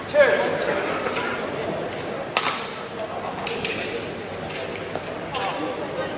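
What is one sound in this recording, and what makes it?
A racket hits a shuttlecock with sharp pops in a large echoing hall.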